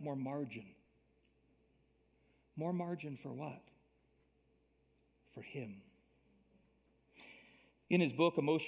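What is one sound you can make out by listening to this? A man speaks with pauses through a microphone in a large room.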